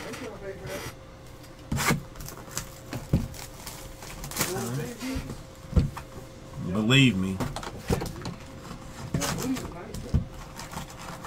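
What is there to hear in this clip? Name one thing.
Card packs and cardboard boxes rustle and knock as hands handle them.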